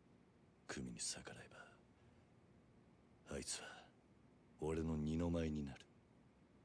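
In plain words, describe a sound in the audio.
A young man speaks in a low, strained voice, close by.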